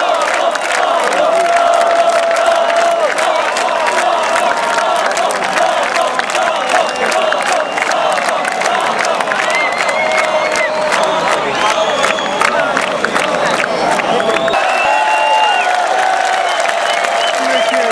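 People in a crowd whistle shrilly.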